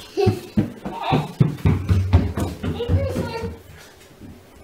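A young child's footsteps patter across a wooden floor.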